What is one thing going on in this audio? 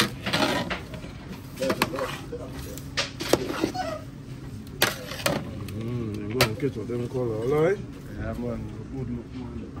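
A pot of broth bubbles as it boils.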